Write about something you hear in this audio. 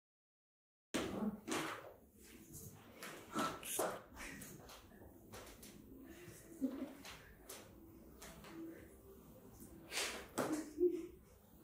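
Several young women talk and laugh together close by.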